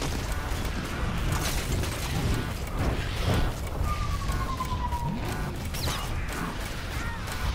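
Game sound effects rumble steadily, low and dense.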